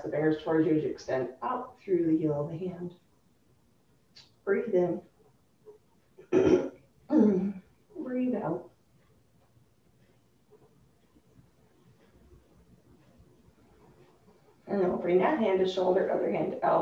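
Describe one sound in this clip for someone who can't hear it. A woman speaks calmly, giving instructions.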